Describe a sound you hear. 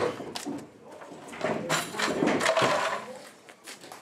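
Metal folding chairs clatter as they are stacked.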